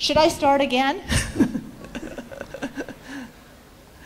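A woman laughs into a microphone.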